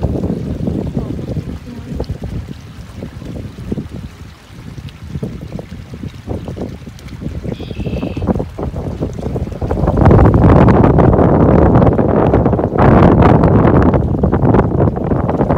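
Small waves lap against the shore.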